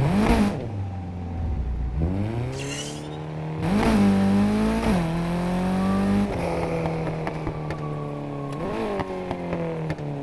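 A racing car engine roars loudly, revving up and dropping with each gear change.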